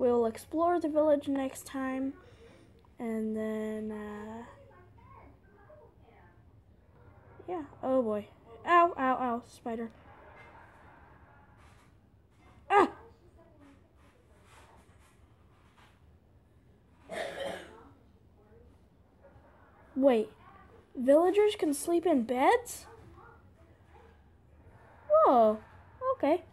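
A young boy talks with animation, close to a microphone.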